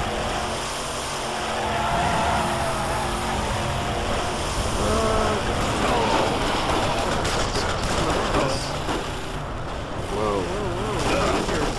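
A monster truck engine roars and revs while driving over rough ground.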